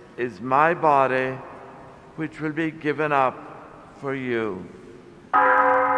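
An elderly man chants through a microphone in a large echoing hall.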